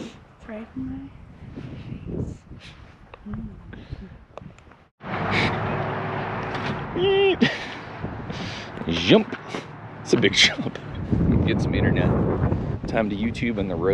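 A man talks casually close to the microphone.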